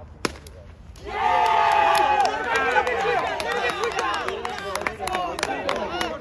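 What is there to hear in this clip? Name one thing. Several men shout and cheer excitedly outdoors.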